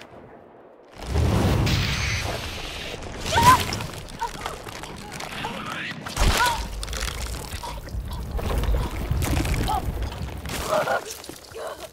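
A monstrous creature snarls and roars loudly.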